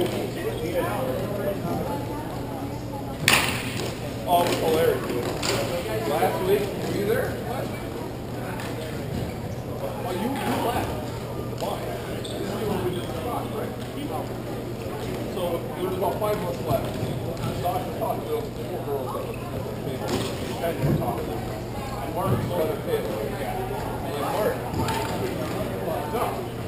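Players shout to each other.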